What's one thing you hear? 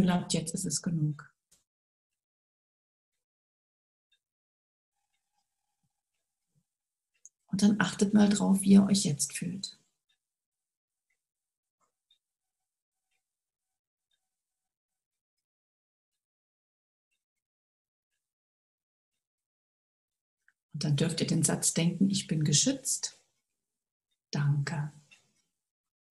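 A woman speaks calmly over an online call, in short bursts with long silences between.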